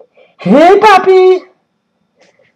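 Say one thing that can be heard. A young woman screams through an online call.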